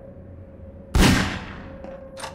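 A pistol fires a single loud shot that echoes.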